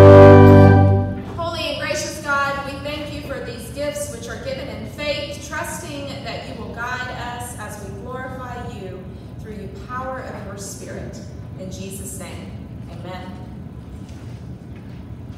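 A group of people sing together in an echoing hall.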